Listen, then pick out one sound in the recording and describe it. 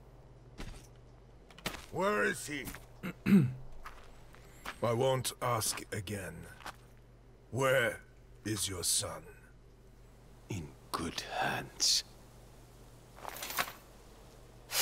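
A gruff middle-aged man answers slowly.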